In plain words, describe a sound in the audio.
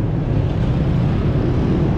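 A scooter engine putters close by.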